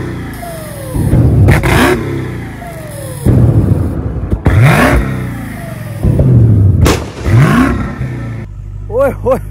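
A car engine revs hard in repeated bursts, close by.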